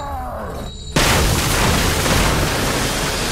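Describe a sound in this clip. Wooden boards smash and splinter with a loud crash.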